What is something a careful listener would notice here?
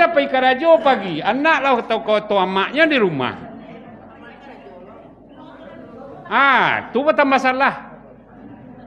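An elderly man speaks loudly and expressively through a microphone, with a sing-song delivery.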